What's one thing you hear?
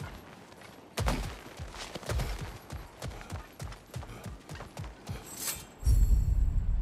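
Heavy footsteps run across stone and wooden planks.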